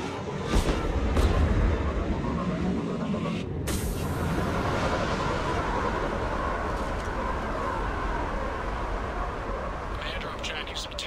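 A spacecraft's engines roar and hum steadily.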